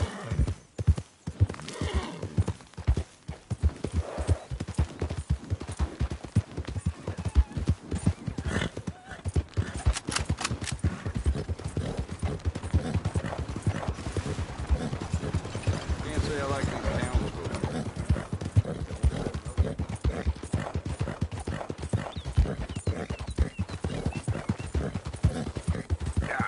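A horse gallops with rapid hoofbeats on a dirt path.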